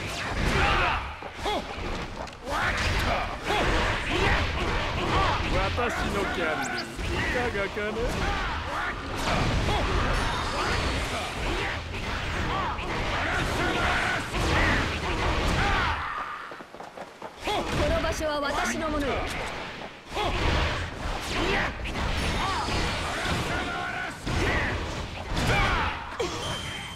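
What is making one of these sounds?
Game combat effects crash and whoosh with rapid hits and blasts.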